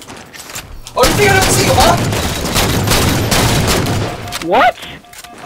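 Rifle shots fire in a rapid burst.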